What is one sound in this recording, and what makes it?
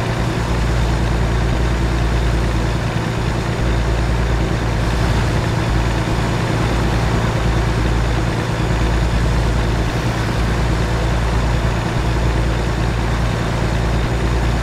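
A truck engine drones steadily at low revs.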